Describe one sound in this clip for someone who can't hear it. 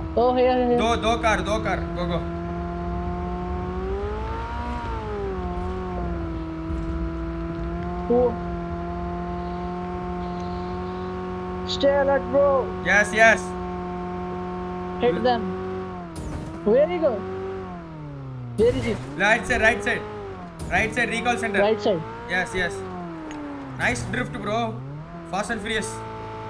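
A car engine hums steadily, rising and falling in pitch as it speeds up and slows.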